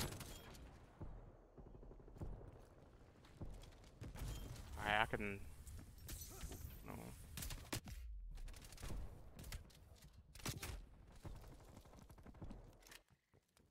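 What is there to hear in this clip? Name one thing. Rapid gunfire bursts out in short volleys.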